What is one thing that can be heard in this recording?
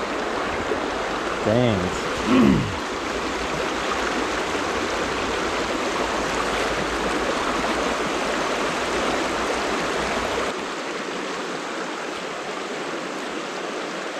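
A shallow stream rushes and burbles over stones close by.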